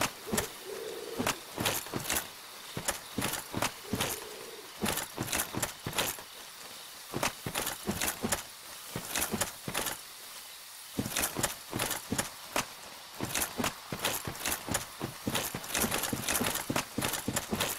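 Armoured footsteps clank and crunch over grass and earth.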